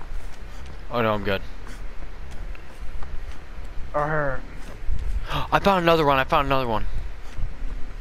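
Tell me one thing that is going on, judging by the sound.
Footsteps run quickly over leaves and soft ground.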